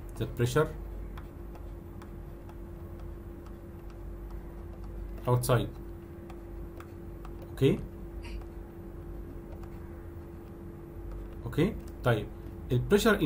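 A young man speaks slowly and haltingly over an online call, with long pauses.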